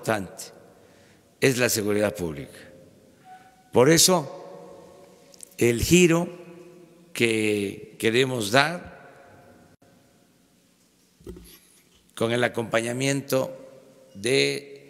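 An elderly man speaks calmly and deliberately into a microphone, with pauses, in a room with some echo.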